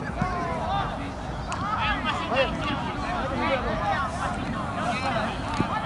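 Several young men shout and call out to each other across an open field outdoors.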